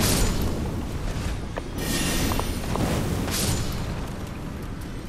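A fiery blast roars loudly.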